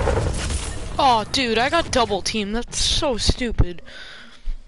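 A short electronic jingle plays.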